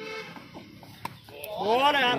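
A cricket bat strikes a ball with a sharp knock.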